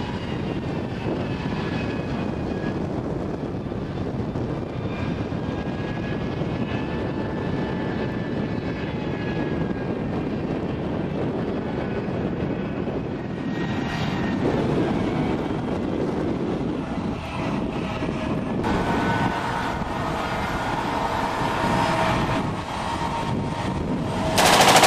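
Tank tracks clank and squeal as they roll.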